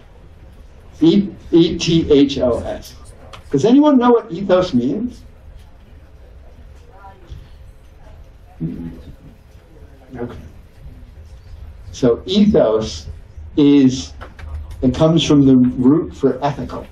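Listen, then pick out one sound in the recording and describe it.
A man lectures calmly into a microphone.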